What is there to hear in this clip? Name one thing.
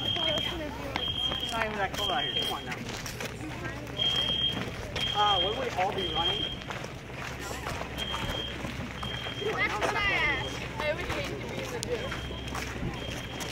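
A group of teenagers chatter and talk nearby outdoors.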